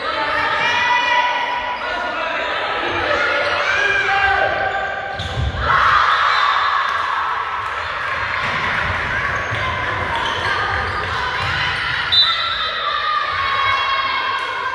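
Young women shout and call out across a large echoing hall.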